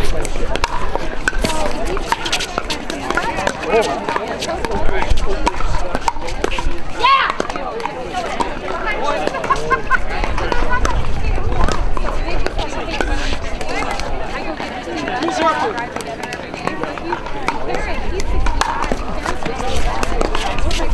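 Paddles strike a plastic ball with sharp pops during a rally.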